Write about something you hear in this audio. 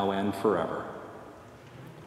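A man sings a chant through a microphone, echoing in a large hall.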